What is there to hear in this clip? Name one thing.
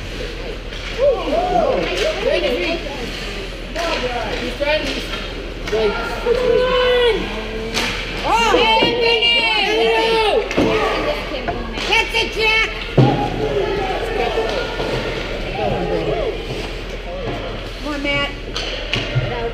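Young hockey players shout across a large echoing rink.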